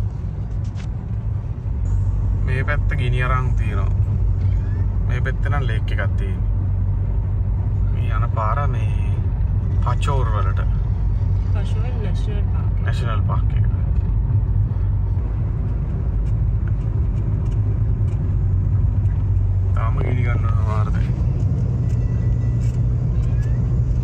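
Tyres rumble steadily on a paved road from inside a moving car.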